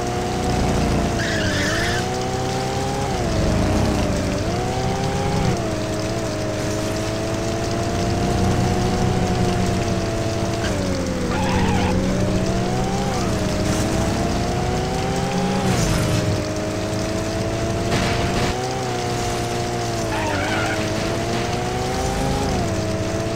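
Car tyres screech as they slide on asphalt.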